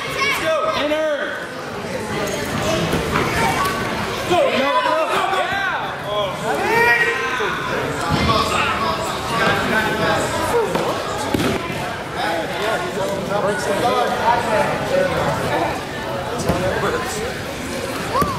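A crowd of spectators chatters and calls out throughout a large echoing gym.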